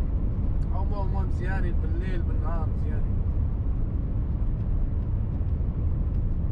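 A vehicle's engine rumbles low and steady while driving.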